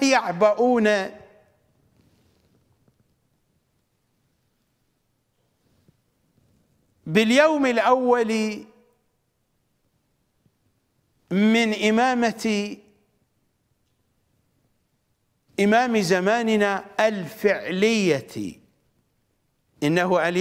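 A middle-aged man speaks with animation into a close microphone, in bursts with long pauses.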